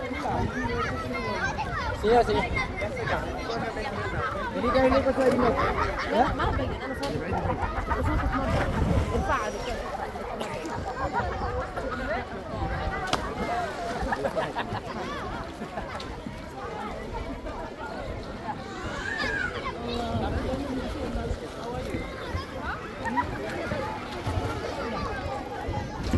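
A crowd of people chatters and calls out nearby outdoors.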